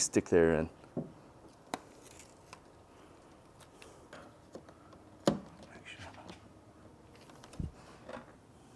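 Plastic parts click and knock as a man fits them together.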